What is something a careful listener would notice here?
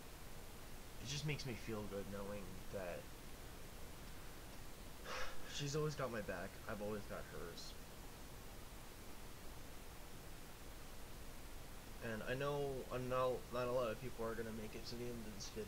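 A young man speaks casually and close to a microphone, in short bursts.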